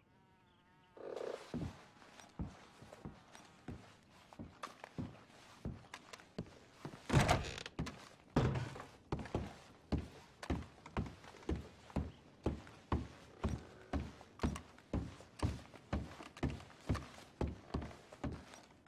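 Heavy boots thud steadily on creaking wooden floorboards.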